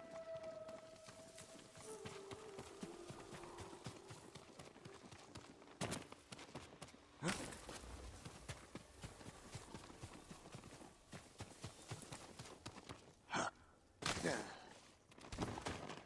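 Footsteps crunch quickly over rock and grass.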